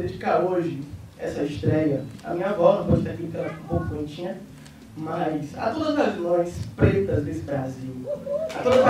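A young woman speaks with feeling into a microphone, heard through loudspeakers.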